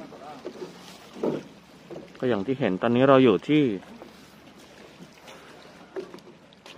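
Small waves lap gently against rocks.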